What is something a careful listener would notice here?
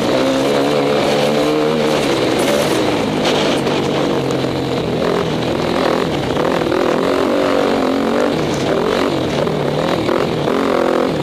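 A dirt bike engine roars up close, its pitch rising and falling as the rider works the throttle.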